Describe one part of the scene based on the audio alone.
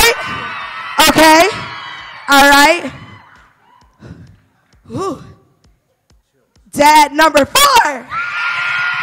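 A man shouts excitedly through a microphone in a large echoing hall.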